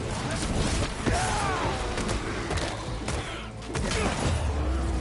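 Punches and blows land with heavy thuds.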